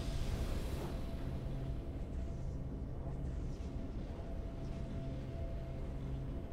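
Triumphant game music plays.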